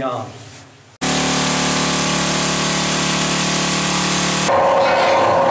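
A pneumatic rock drill hammers loudly into rock.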